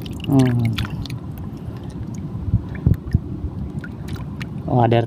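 Small fish wriggle and flap in a hand.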